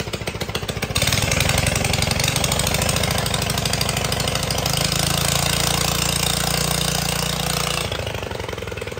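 Tiller blades spin and whir loudly, then slow to a stop.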